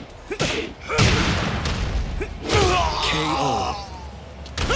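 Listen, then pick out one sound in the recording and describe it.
A loud crash rings out at a knockout blow.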